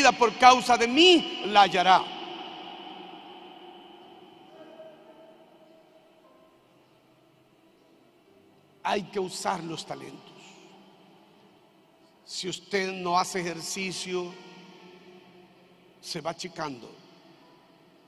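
A middle-aged man preaches forcefully through a microphone in short bursts, his voice echoing through a large hall.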